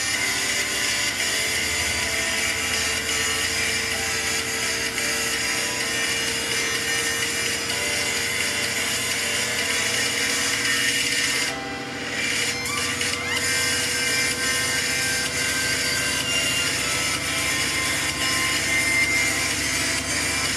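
A washing machine drum turns steadily with a low hum.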